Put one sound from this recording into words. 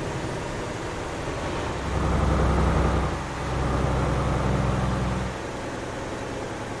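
A heavy truck engine rumbles low and steady, swelling louder for a while.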